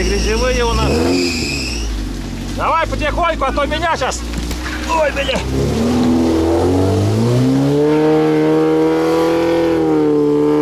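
A vehicle engine rumbles and revs higher.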